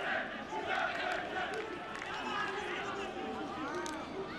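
Young men shout and cheer close by.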